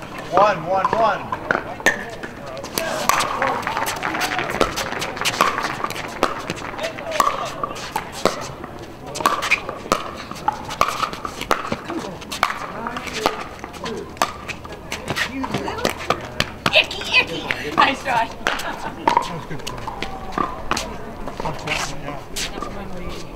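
Paddles sharply pop against a plastic ball in quick rallies.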